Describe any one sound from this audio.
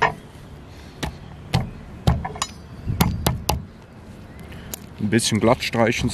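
A knife taps and scrapes on a wooden cutting board.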